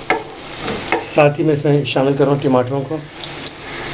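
Chopped tomatoes drop into a sizzling pan.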